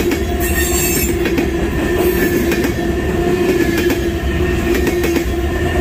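Train wheels squeal steadily against the rails.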